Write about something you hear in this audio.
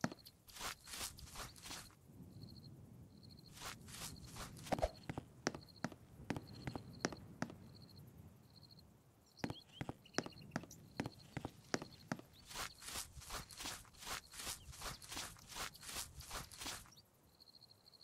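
Quick running footsteps patter on the ground.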